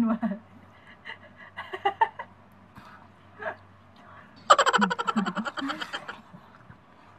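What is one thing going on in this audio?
A young woman laughs with delight close by.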